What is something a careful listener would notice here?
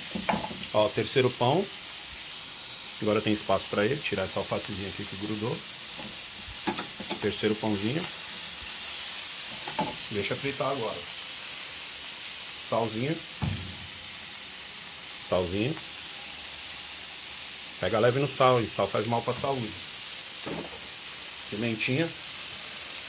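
Burgers sizzle steadily on a hot griddle.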